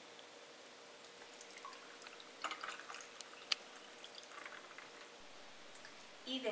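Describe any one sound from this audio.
Liquid pours into a glass over ice.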